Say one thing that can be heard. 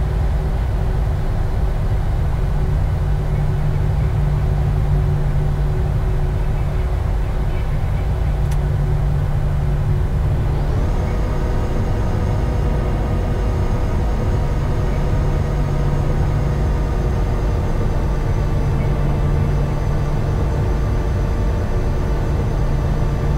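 A jet engine hums with a steady low roar close by.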